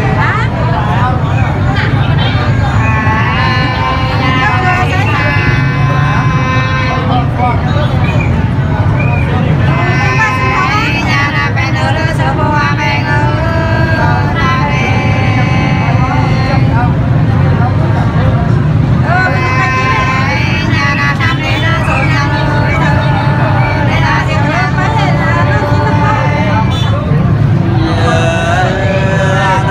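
A woman sings close by in a high, sustained voice.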